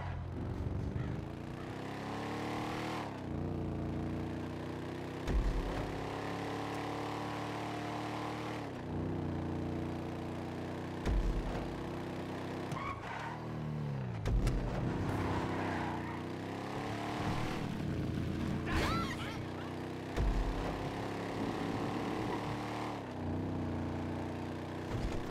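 A muscle car's engine roars at full throttle, shifting up through the gears.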